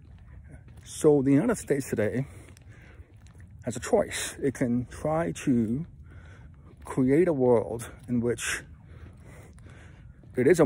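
A man speaks in short bursts close to the microphone.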